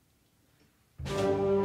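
A school band starts playing loudly in an echoing hall.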